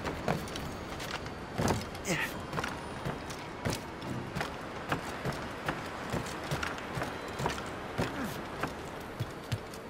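Hands and feet thud and scrape against wooden planks while climbing.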